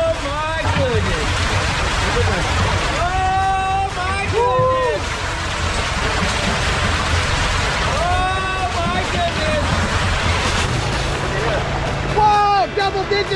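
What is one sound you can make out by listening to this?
Water splashes and churns as fish thrash about.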